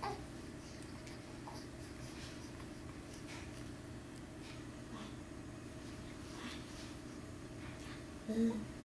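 A baby coos softly close by.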